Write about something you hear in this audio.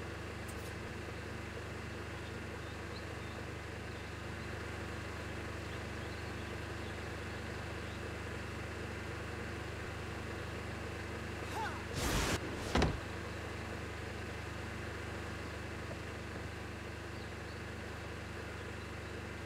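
A generator hums steadily.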